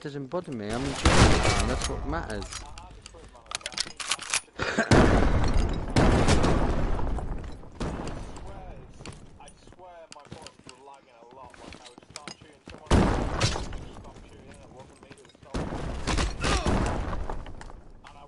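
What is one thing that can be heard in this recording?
Gunshots crack in loud bursts.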